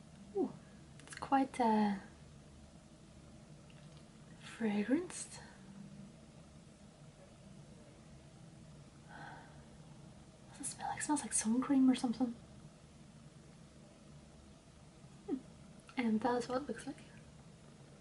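A young woman talks up close, in short bursts with pauses.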